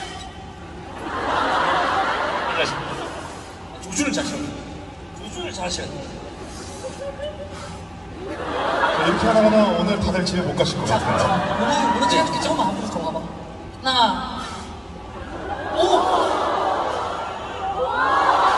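A young man speaks into a microphone over loudspeakers in a large echoing hall.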